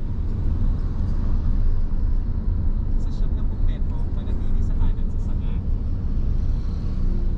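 A vehicle's engine rumbles low and steady as it drives along a road.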